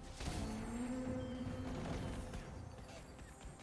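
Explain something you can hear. Magic bolts whoosh and zap during a battle.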